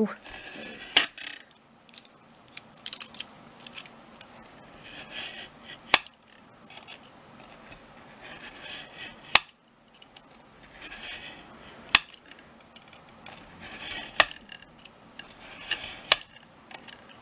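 A metal ruler clicks against a cutting mat.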